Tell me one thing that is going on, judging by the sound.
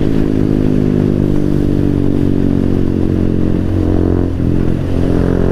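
A motorcycle engine hums steadily up close while riding at speed.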